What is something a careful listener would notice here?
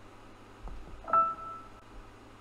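A short electronic chime sounds once.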